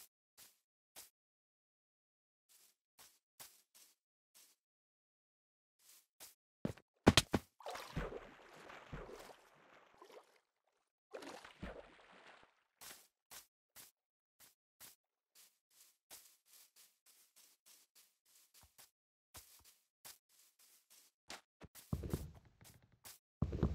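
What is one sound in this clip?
Footsteps patter steadily on grass.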